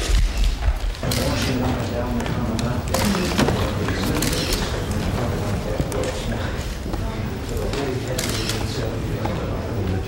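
Several people talk at once in a room.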